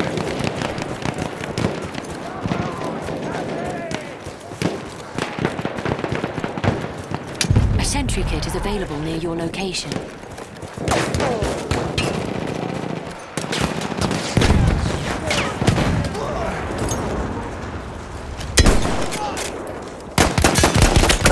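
Rifle shots crack sharply again and again.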